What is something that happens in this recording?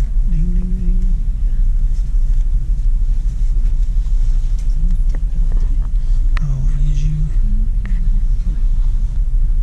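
Tinsel garland rustles in a hand.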